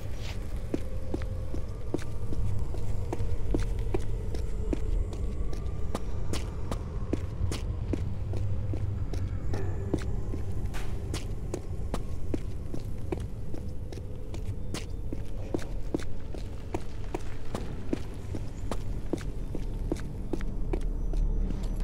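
Quick footsteps run on a stone floor.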